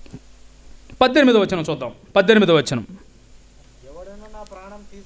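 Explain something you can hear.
A young man recites loudly and expressively into a microphone through loudspeakers.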